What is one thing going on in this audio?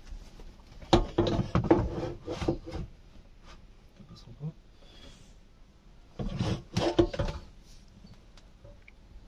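Hard plastic parts knock and click under a man's hands.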